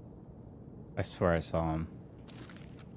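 A man speaks briefly into a headset microphone.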